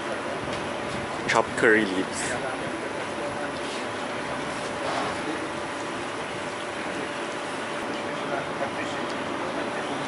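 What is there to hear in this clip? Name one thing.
Gloved hands squish and rub a wet spice paste into pieces of food.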